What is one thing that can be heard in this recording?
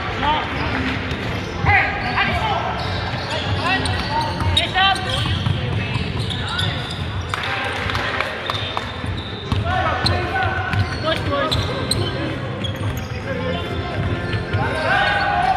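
Young men shout and call out to each other across an echoing hall.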